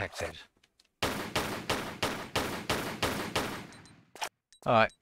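Pistols fire in a rapid series of sharp shots.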